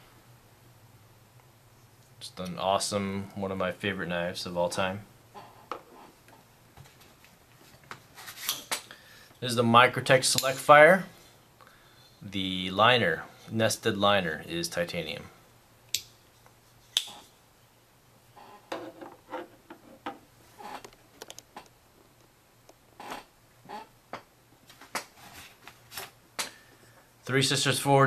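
Metal knives click and clink as they are handled.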